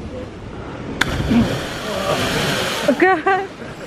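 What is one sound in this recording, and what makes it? A body splashes loudly into the sea.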